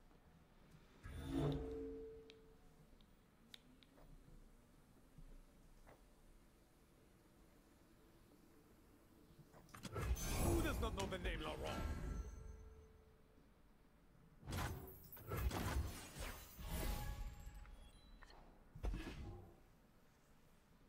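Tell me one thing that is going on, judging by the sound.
Game sound effects whoosh and chime as cards are played.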